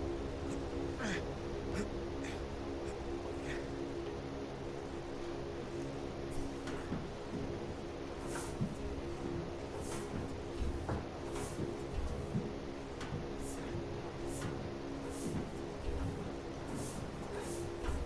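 A man crawls through a metal duct with soft hollow thumps.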